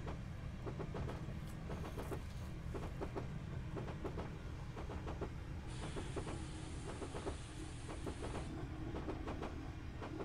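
A steam locomotive chuffs in a steady rhythm.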